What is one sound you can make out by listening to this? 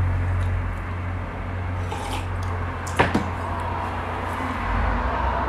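A ceiling fan hums steadily overhead.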